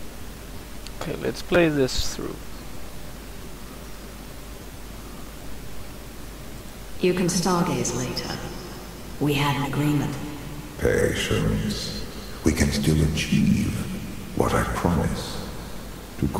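A young man talks through a microphone.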